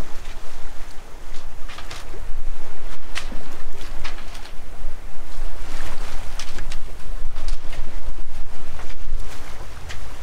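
Wind buffets loudly and rumbles, outdoors on open water.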